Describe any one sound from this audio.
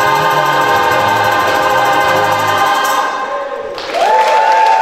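A choir of men and women sings together in an echoing hall.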